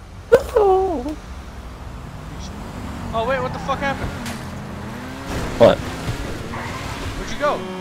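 A sports car engine roars and revs as the car speeds along.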